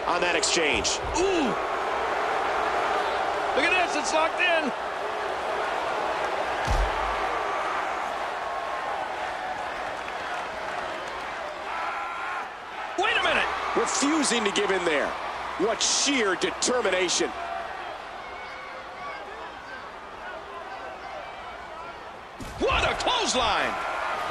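A heavy body slams onto the floor with a thud.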